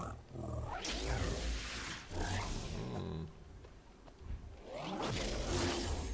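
Laser blasts zap and whine in bursts.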